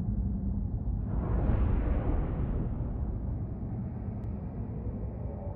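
A strong wind howls and gusts, swelling and then easing.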